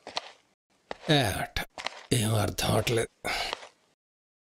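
A middle-aged man speaks quietly nearby.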